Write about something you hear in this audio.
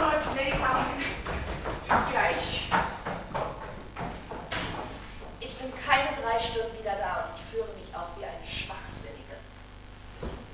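A young man and a young woman speak with animation, heard from a distance in a large room.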